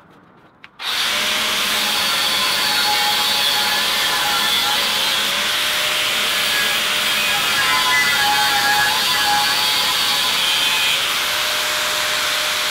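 An angle grinder whines loudly as it grinds into steel.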